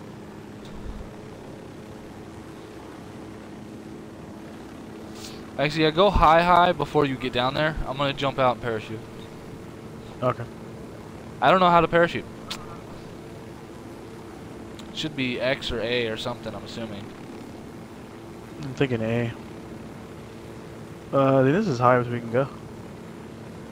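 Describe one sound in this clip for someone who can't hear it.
A helicopter's engine and rotor hum steadily.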